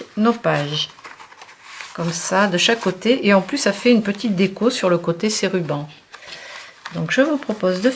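Card paper rustles and slides as it is handled.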